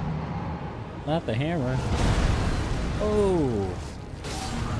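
A giant lets out deep, bellowing roars.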